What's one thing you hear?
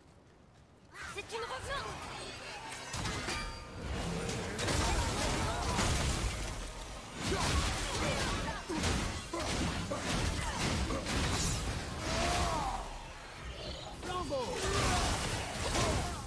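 Heavy blows and blasts crash in a rapid fight.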